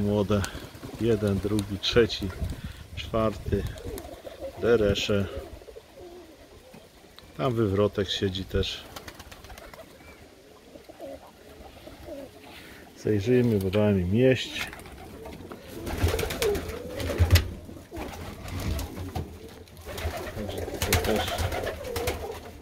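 Pigeons coo with low, rolling calls, on and off.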